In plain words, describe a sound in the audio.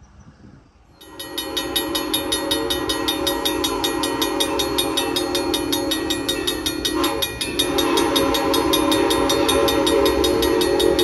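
A train horn blares loudly nearby.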